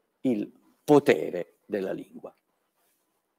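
An older man speaks calmly and clearly into a close microphone.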